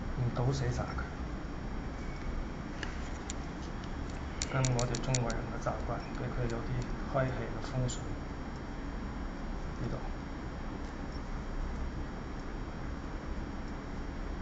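A paintbrush taps softly on paper.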